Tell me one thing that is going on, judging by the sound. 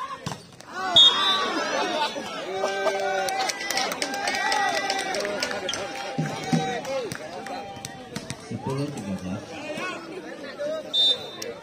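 A volleyball is struck with hard slaps.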